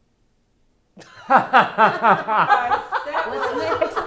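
A woman laughs loudly and heartily.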